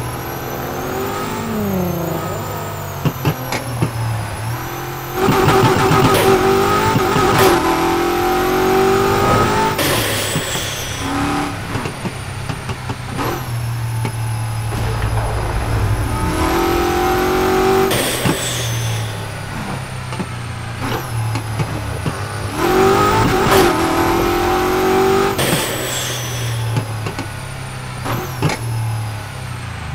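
A car engine roars and revs up and down through the gears.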